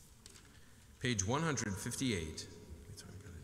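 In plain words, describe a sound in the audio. A man chants into a microphone in a large echoing hall.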